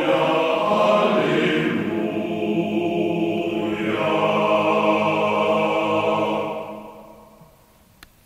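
A male choir sings in harmony in a large echoing hall, then the song fades away.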